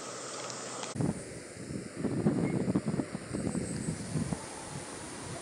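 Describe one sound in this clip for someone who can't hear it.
A monkey calls out close by.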